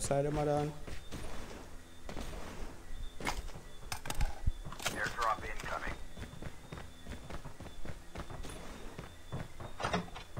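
Quick footsteps patter on hard ground as a game character runs.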